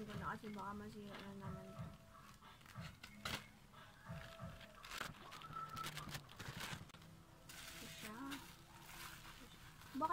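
A plastic mailer bag crinkles and rustles.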